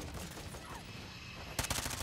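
A jet roars overhead.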